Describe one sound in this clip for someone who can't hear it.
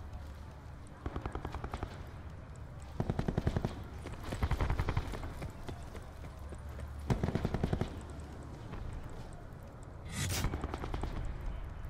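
Automatic gunfire rattles in short bursts.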